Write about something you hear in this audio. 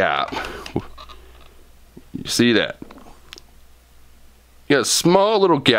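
A metal tool clicks and scrapes against a small fitting.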